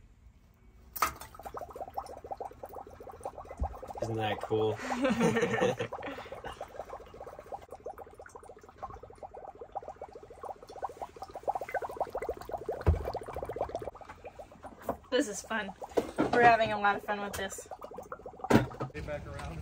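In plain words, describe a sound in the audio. Dry ice bubbles and gurgles loudly in a mug of water.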